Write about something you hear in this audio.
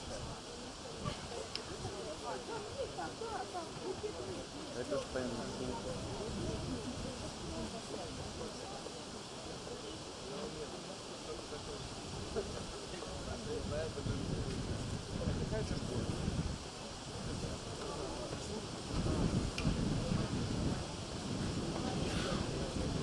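Acoustic guitars strum outdoors.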